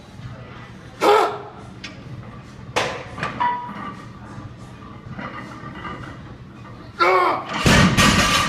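A young man grunts and shouts with strain close by.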